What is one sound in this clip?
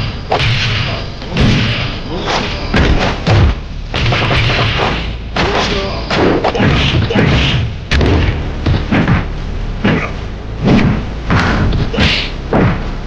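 Punches and kicks land with sharp smacks and thuds.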